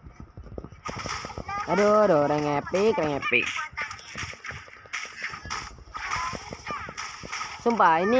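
Game spell blasts and blows clash rapidly.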